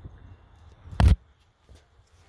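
A hand knocks on a metal bumper with a sharp clank.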